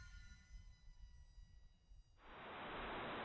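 Small drone motors whine with a steady high pitch.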